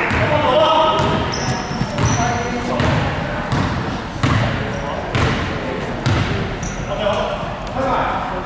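Young men call out to each other across a large echoing hall.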